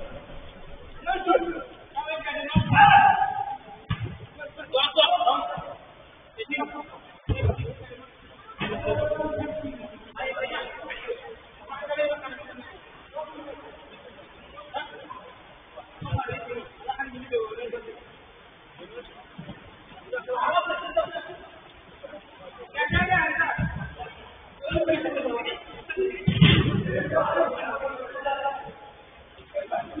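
Young men shout and call to each other across a large echoing pitch.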